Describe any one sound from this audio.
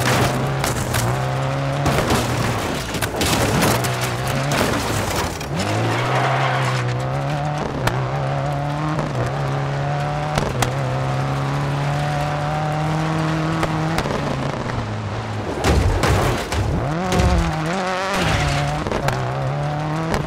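A rally car engine revs hard and shifts through the gears.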